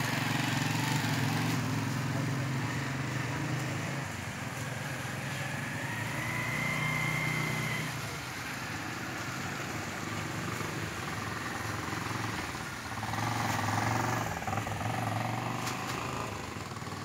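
Motorcycle engines hum and rev as they ride past close by.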